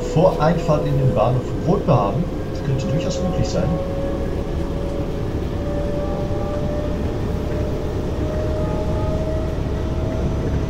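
An electric motor whines, rising slowly in pitch as the train speeds up.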